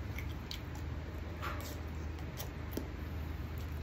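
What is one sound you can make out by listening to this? A man slurps food from his fingers.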